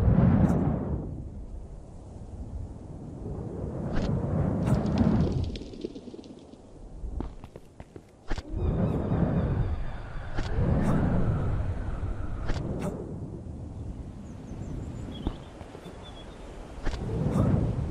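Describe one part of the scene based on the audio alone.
Air rushes past in loud, swelling gusts.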